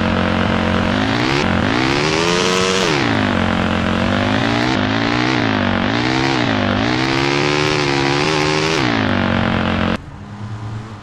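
A motorbike engine roars loudly, revving up and down.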